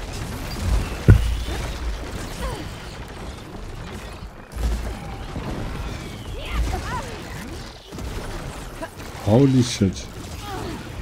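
A large machine roars and stomps heavily.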